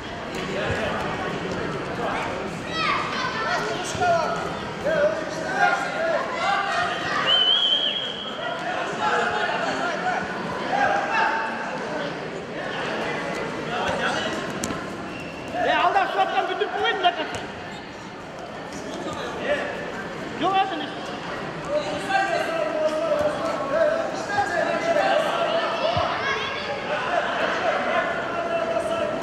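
Several men shout encouragement loudly in an echoing hall.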